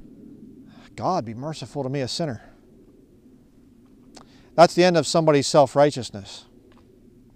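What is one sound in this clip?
A man speaks calmly and clearly close by, outdoors.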